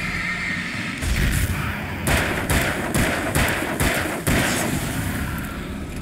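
A pistol fires several quick shots.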